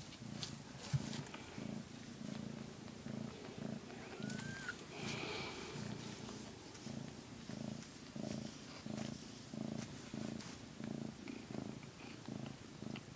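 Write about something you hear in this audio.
A cat purrs loudly and steadily up close.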